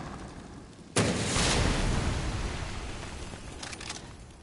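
A rocket launcher fires with a loud blast that rumbles away.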